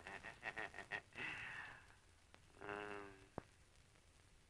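A middle-aged man laughs heartily nearby.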